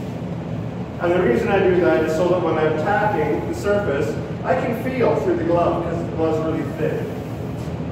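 A man speaks calmly through a mask, close by.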